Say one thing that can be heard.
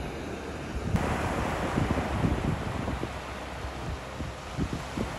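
Waves wash and break on a shore.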